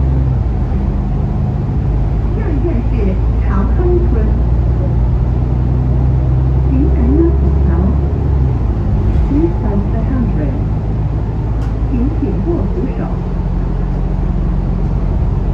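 A bus engine rumbles and whines steadily as the bus drives along.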